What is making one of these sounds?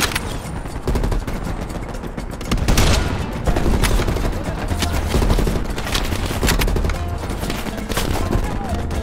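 Rifle shots crack loudly, one after another.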